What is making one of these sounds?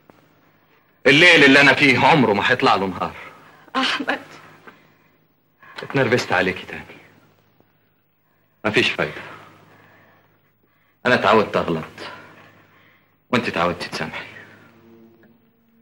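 A young man speaks tensely.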